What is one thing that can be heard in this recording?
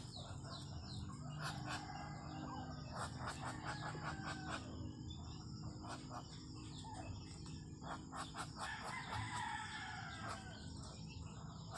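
Ducks hiss and chirp softly nearby.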